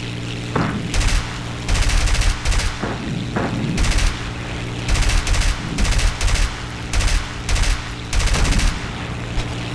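Machine guns fire in short, loud bursts.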